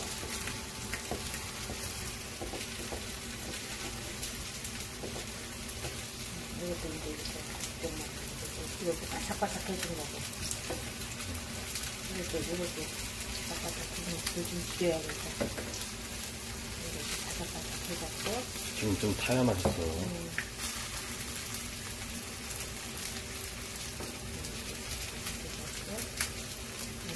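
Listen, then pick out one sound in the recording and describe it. A spatula scrapes and taps against a frying pan.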